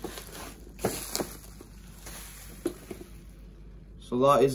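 Plastic bubble wrap crinkles and rustles as it is pulled from a box.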